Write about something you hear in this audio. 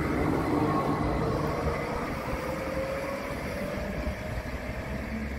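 A second tram approaches from afar with a rising hum.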